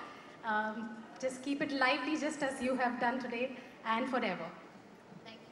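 A woman speaks with animation through a microphone on a loudspeaker.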